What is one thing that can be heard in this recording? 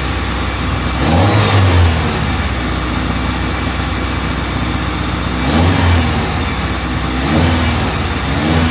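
A car engine revs up sharply in short bursts.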